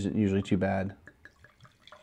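Wine pours into a glass.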